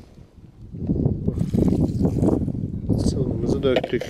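Liquid splashes as it is poured onto grain.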